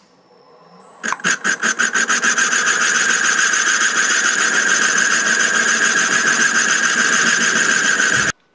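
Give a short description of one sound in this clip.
A lathe spins up and whirs steadily.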